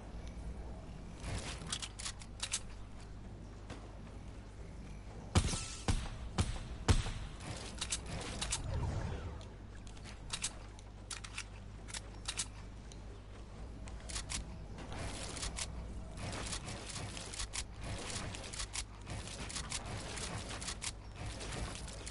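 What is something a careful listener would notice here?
Wooden walls snap into place with quick, sharp knocks.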